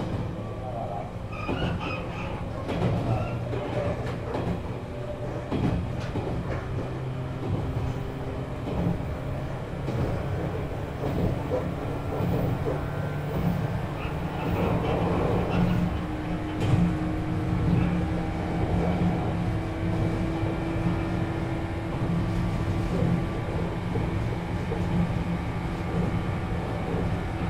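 An electric train's motor hums and whines steadily while the train runs.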